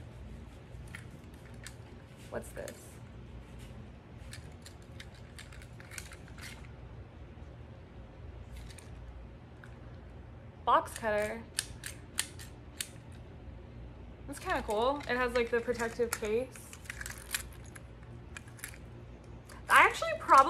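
A plastic tool clicks and rattles.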